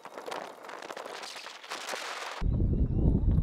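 Water splashes and laps against a boat hull.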